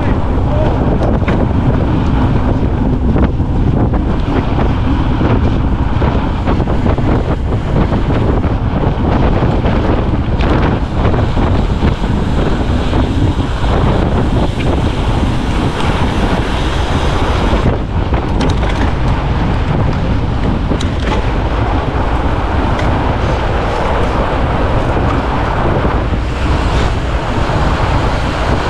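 Fat bicycle tyres crunch over packed snow.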